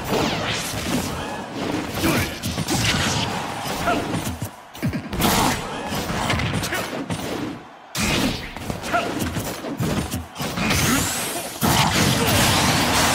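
Punches, kicks and explosions from a fighting game thud and crack in quick bursts.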